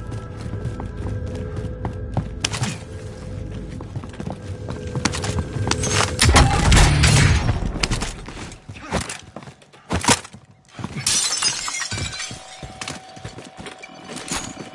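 Footsteps thud quickly on wooden stairs and floors.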